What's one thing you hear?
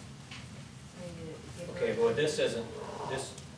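An elderly man speaks calmly across a room.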